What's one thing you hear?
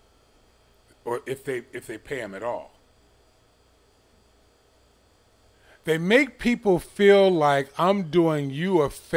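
A man speaks with feeling, close to a microphone.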